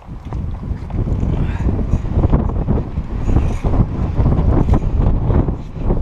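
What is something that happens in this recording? Metal climbing clips clink and scrape along a steel cable.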